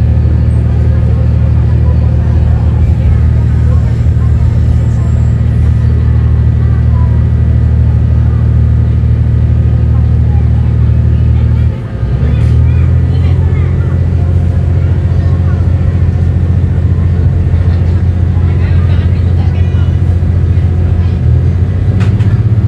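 A diesel railcar's engine drones under way, heard from inside the carriage.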